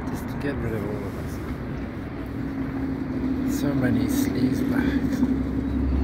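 A middle-aged man speaks close by in a low voice.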